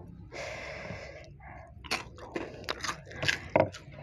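A young woman whispers close to a microphone.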